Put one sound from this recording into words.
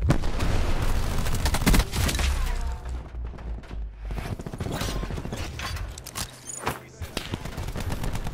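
A gun fires bursts of shots.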